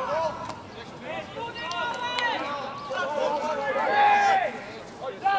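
Men shout and call out to each other across an open outdoor field.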